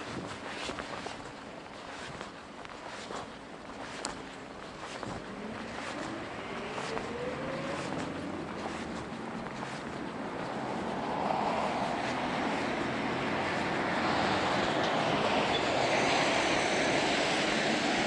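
Wind rushes past and grows steadily stronger.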